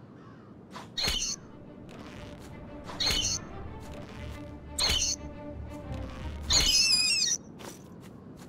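A bowstring twangs as arrows are loosed, several times.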